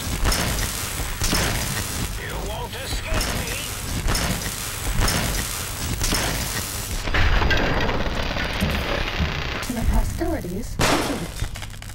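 Electricity sizzles and crackles around a robot.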